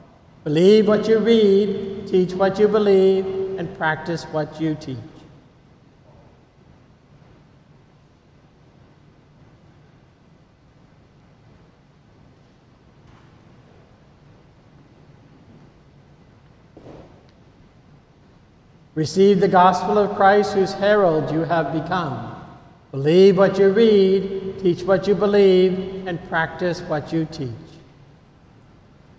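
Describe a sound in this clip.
A man chants slowly in a large echoing hall.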